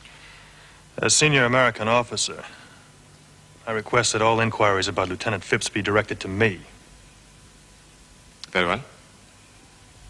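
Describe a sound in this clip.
A man with a deep voice answers close by.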